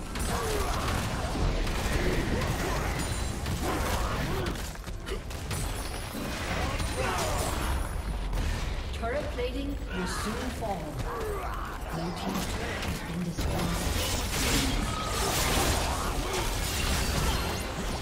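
Spell blasts, clashing weapons and magical whooshes of a video game battle ring out continuously.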